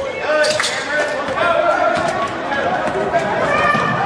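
A basketball bounces on the hard floor.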